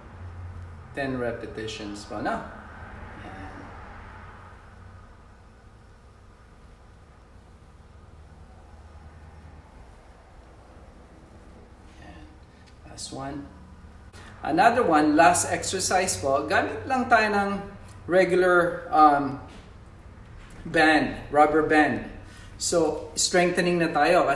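A man speaks calmly and clearly close by.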